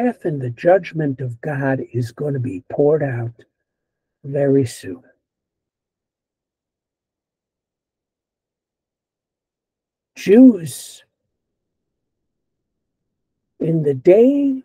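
An older man speaks calmly through an online call, pausing often.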